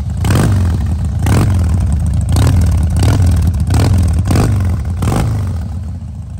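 A motorcycle engine revs up sharply in short, repeated bursts.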